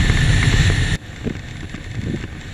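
A distant vehicle hums faintly across an open flat.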